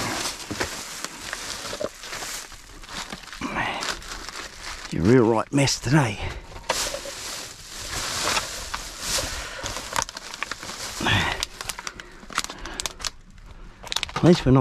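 Plastic bags rustle and crinkle as hands rummage through them.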